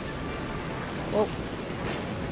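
Explosions burst and crackle.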